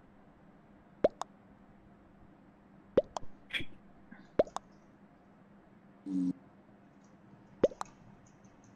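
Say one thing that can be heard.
Short electronic chimes pop one after another.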